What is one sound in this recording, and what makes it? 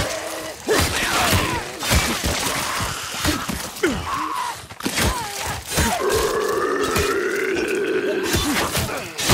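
Heavy blows thud against bodies in quick succession.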